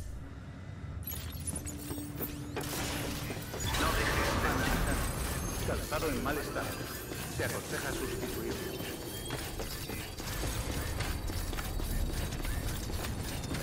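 Footsteps thud steadily on hard ground.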